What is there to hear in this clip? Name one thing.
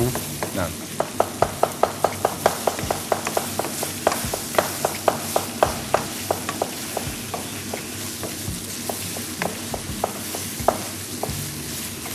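A knife chops quickly on a cutting board.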